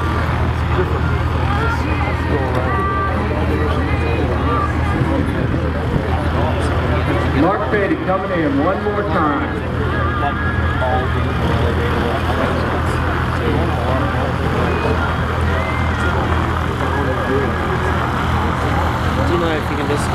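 Men and women in a crowd chatter nearby outdoors.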